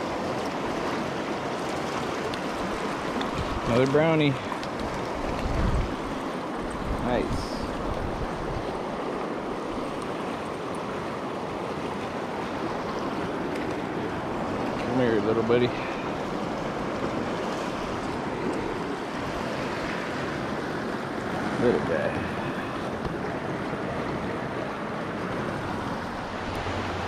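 A fast river rushes and splashes steadily over rocks nearby.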